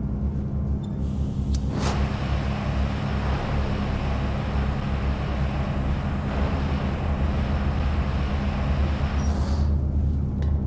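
A cutting torch hisses loudly against metal.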